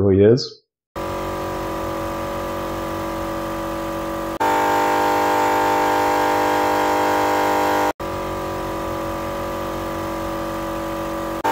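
An air compressor runs with a steady buzzing drone.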